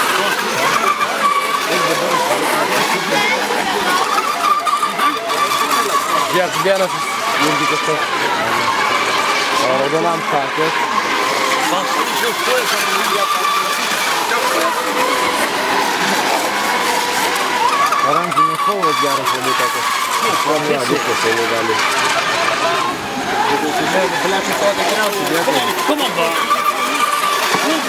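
Model racing boat engines whine at a high pitch, rising and falling as the boats pass.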